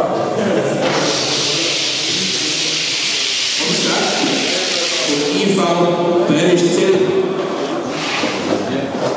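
Men chatter and call out in a large echoing hall.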